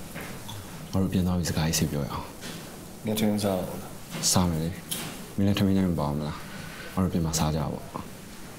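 A teenage boy speaks.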